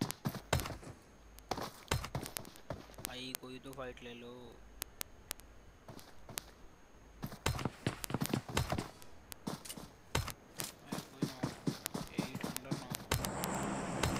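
Gunshots crack in short, quick bursts.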